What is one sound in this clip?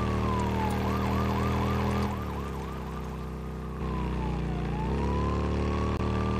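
A motorcycle engine rumbles steadily and changes pitch as it cruises.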